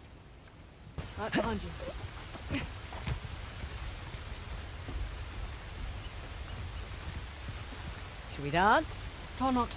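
A young woman grunts with effort while climbing.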